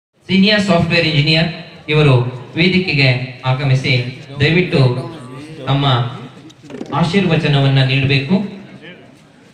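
A man speaks loudly and with passion through a loudspeaker, echoing outdoors.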